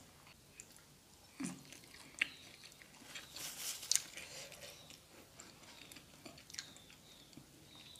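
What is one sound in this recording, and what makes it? A young woman chews and smacks her lips while eating.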